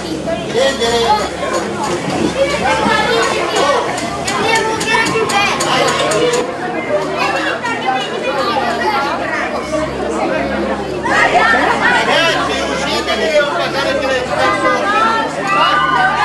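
A crowd of children chatter and shout close by.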